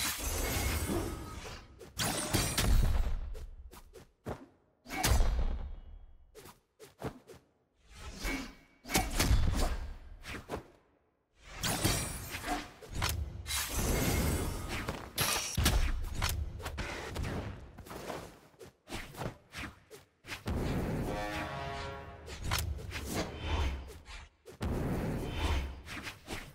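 Weapons swing and strike with sharp whooshes and heavy thuds in a fast fight.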